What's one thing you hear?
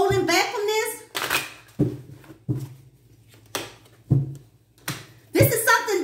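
A deck of cards riffles and flicks as it is shuffled.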